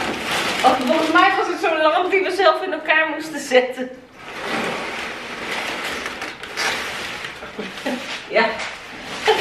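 Packing paper rustles and crinkles.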